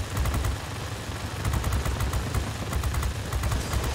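Explosions boom on the ground.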